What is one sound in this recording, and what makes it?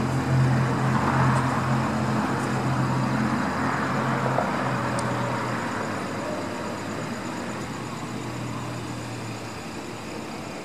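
A car engine idles nearby with a low hum.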